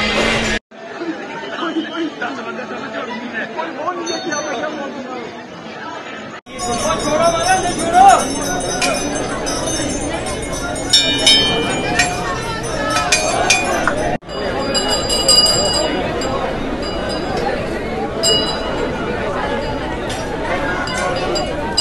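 A large crowd of men and women chatters all around.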